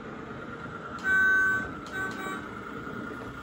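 A toy train whistle toots twice.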